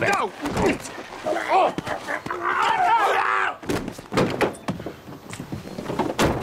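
Two men scuffle, with thumps and rustling of clothes.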